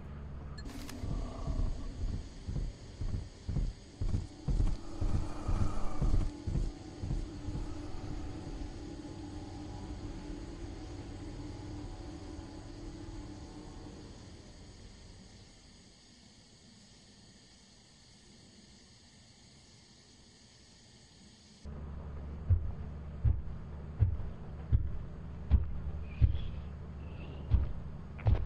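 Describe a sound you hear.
Heavy footsteps thud steadily on a hard floor.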